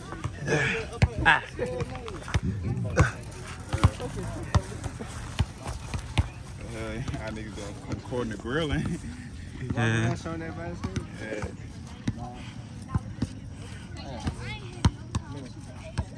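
A basketball bounces on pavement with sharp thuds.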